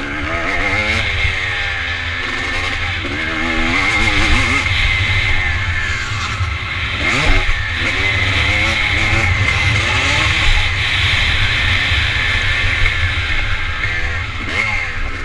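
Tyres crunch and skid on loose dirt.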